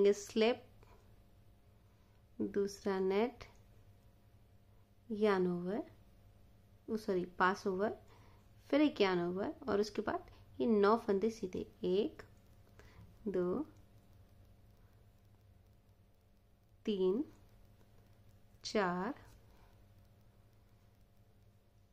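Metal knitting needles click softly against each other.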